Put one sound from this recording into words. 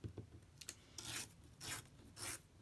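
A pencil scratches along paper in short strokes.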